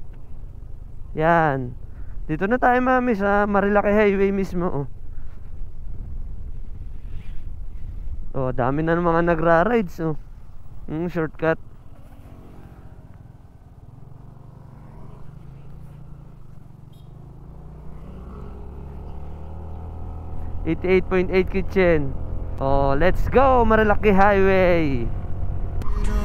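A motorcycle engine hums steadily while riding.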